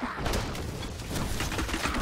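A fireball explodes with a loud burst.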